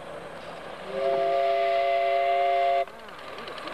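A miniature steam locomotive's whistle blows loudly and steadily.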